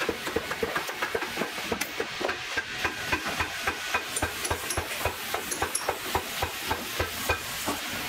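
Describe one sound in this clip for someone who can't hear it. A stitching machine clatters with rapid, steady mechanical knocks.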